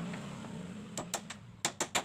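A hand saw cuts through wood.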